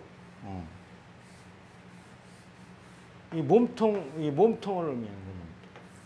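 An elderly man lectures calmly into a microphone.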